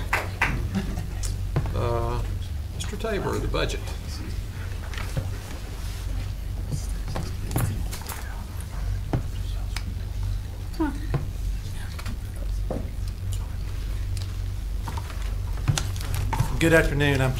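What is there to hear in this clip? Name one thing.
People murmur and chat quietly.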